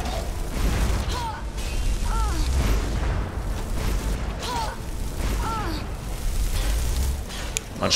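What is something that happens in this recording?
Fire spells roar and crackle in bursts.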